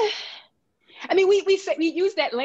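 A woman speaks warmly over an online call.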